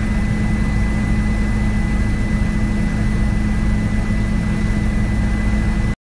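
An aircraft engine drones loudly and steadily from inside the cabin.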